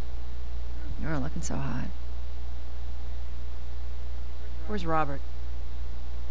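Another woman speaks in a calm, dry voice.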